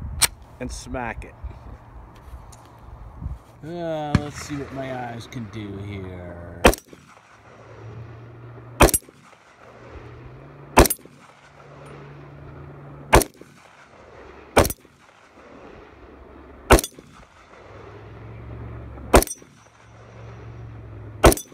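Loud gunshots crack one after another outdoors.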